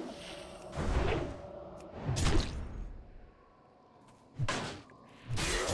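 Magic spells burst and crackle in short, loud bursts.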